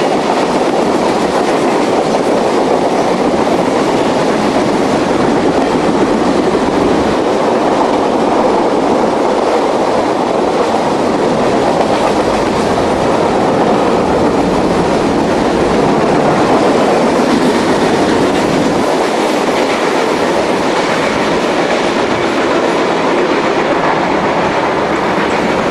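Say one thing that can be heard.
Steel wheels clatter on the rails.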